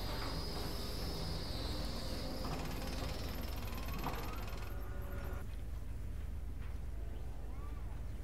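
Short interface clicks sound as a building is placed.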